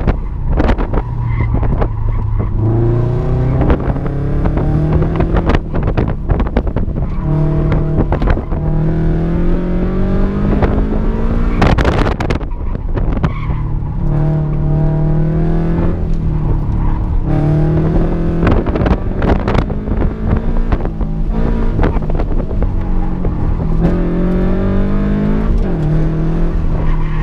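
A car's cabin rattles and knocks over bumps.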